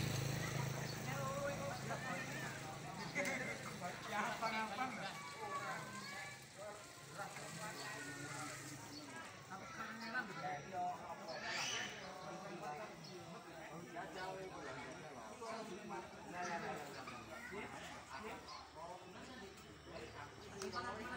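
A crowd of men and women chat outdoors at a distance.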